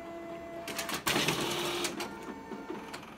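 A sheet of paper rustles as a copier pushes it out.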